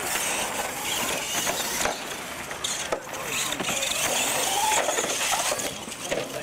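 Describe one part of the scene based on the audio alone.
A small electric motor of a toy truck whirs as it drives.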